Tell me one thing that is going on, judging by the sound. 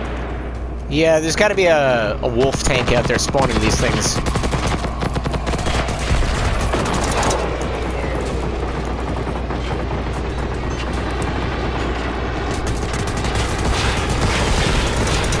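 An assault rifle fires rapid bursts of gunshots.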